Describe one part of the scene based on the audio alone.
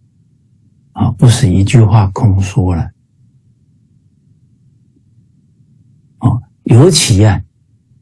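A middle-aged man speaks calmly into a microphone, heard through an online call.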